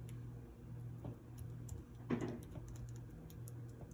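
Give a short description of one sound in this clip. A metal spoon scrapes soft spread across bread.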